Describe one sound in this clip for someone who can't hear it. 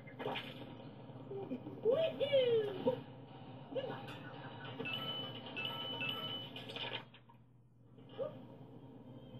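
Electronic game sound effects and music play from a television speaker.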